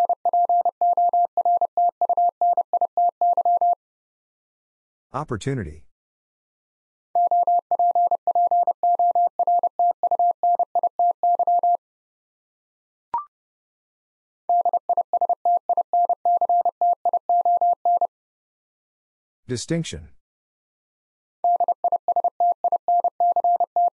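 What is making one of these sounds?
A telegraph key taps out fast, steady beeping Morse code.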